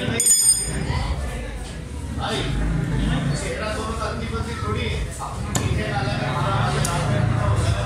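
A heavy knife scrapes and cuts through fish on a wooden block.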